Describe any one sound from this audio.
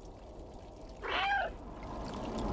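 A dog lets out a single short yelp.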